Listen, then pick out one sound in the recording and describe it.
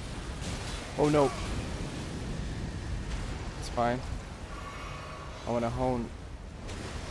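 A huge creature groans and roars.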